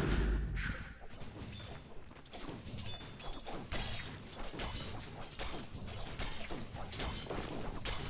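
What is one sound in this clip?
Weapons strike with short, quick hits.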